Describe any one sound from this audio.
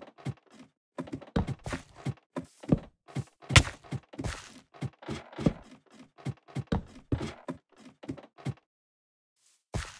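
Wooden blocks are placed with soft knocks.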